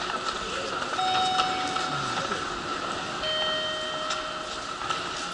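Electronic gates beep in short steady tones.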